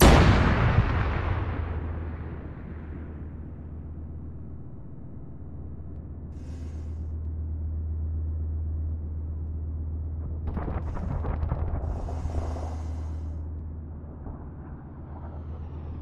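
Jet engines roar as fighter planes fly past.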